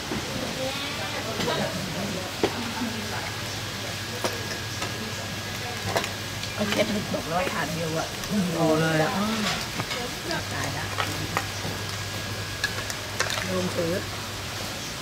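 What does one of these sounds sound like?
Adults talk with each other close by.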